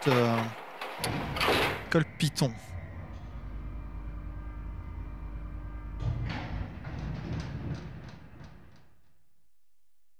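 A heavy lift rumbles and hums steadily as it descends.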